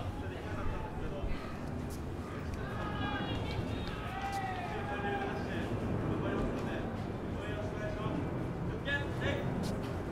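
A crowd of men and women chatters nearby in an open outdoor stand.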